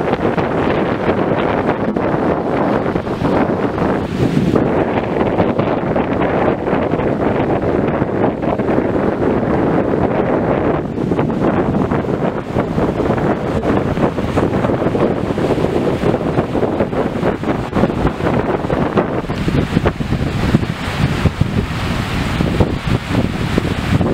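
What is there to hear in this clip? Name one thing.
Choppy water washes onto a shore.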